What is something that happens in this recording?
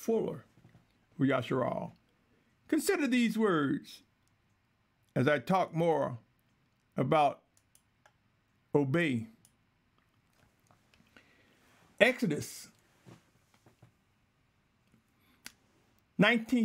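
An elderly man speaks calmly and slowly into a close microphone, in short phrases with pauses.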